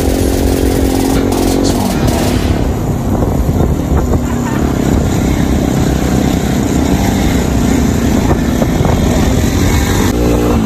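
A motorcycle engine revs loudly close by.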